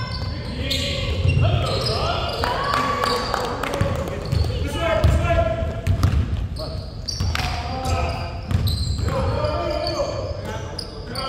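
A basketball bounces on a wooden floor with hollow thuds in a large echoing hall.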